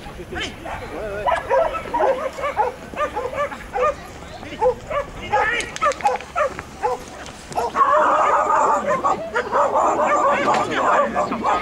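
A dog barks excitedly outdoors.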